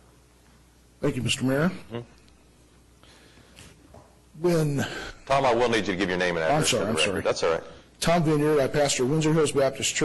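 A middle-aged man speaks calmly into a microphone in a large echoing hall.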